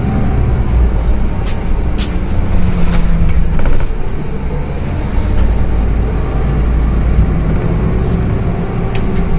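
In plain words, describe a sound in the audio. The bus body rattles and clicks over the road.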